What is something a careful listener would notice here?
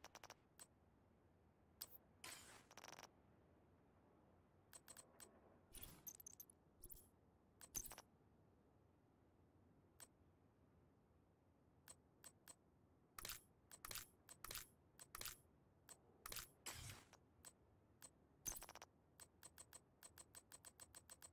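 Short electronic menu clicks and blips sound again and again.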